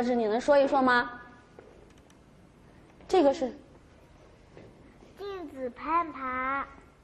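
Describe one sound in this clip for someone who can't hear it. A woman speaks clearly and with animation to children, heard through a microphone.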